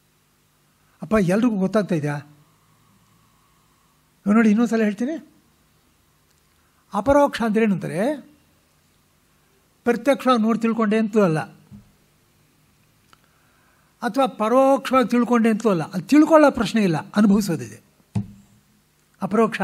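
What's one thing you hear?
An elderly man speaks calmly in short phrases, with pauses between them.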